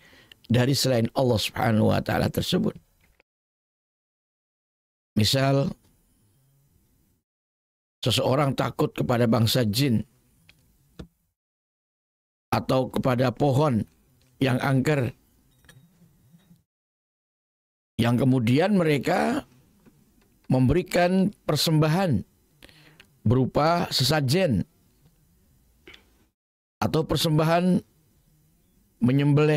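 An elderly man speaks calmly and with animation into a close microphone, in bursts with pauses.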